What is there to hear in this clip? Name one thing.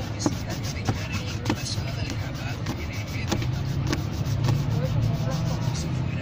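A brush scrubs against a leather shoe.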